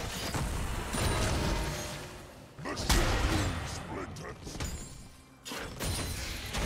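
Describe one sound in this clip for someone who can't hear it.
Game spell effects burst and clash during a battle.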